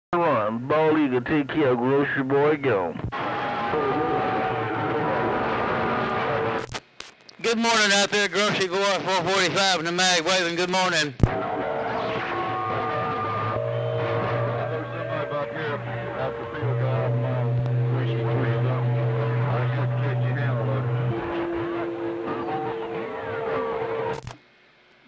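A radio receiver gives out warbling, whistling signals with hiss.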